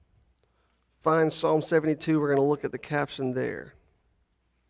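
A man speaks calmly through a microphone in a large hall.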